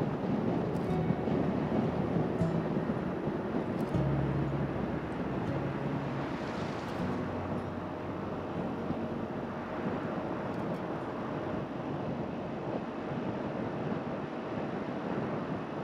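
Tyres roll steadily on asphalt.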